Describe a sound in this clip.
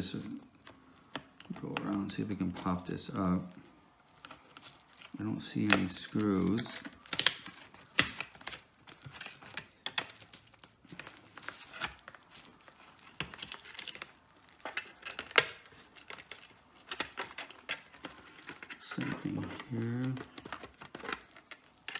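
A plastic pry tool clicks and snaps against a laptop casing.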